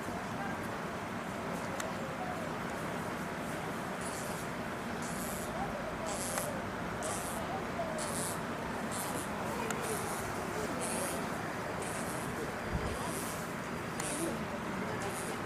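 Ropes creak and rattle as a chimpanzee climbs along them.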